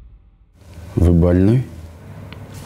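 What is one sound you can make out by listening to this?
A man speaks briefly in a low, calm voice.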